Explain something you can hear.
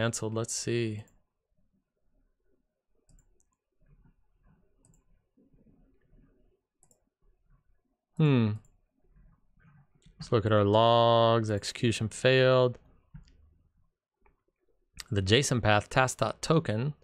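A man speaks calmly and closely into a microphone, with pauses.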